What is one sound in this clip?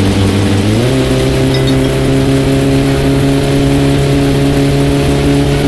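A car engine hums steadily at speed, its pitch rising briefly near the start.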